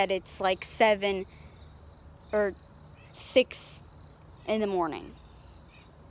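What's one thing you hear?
A young girl speaks close by with animation, in short bursts.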